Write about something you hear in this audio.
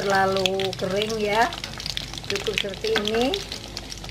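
Meat sizzles and crackles as it fries in hot oil.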